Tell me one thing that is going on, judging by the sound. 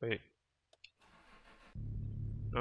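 A car starter motor cranks briefly.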